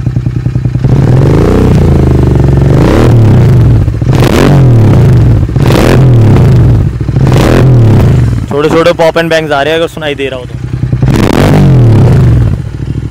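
A motorcycle engine revs loudly and falls back again and again.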